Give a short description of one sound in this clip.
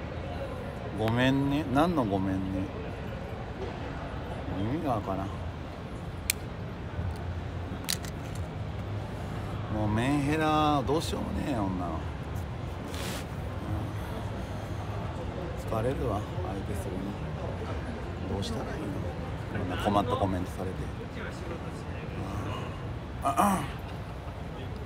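A young man talks casually and close by, with pauses.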